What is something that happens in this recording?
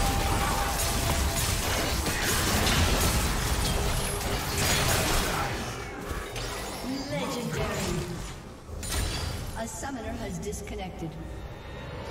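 Game spell effects blast and crackle in a fight.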